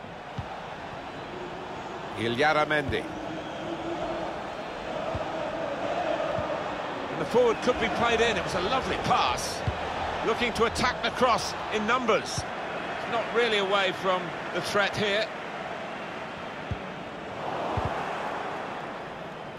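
A large crowd roars steadily in a stadium.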